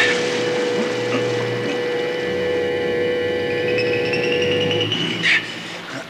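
A machine hums with a steady electronic whine.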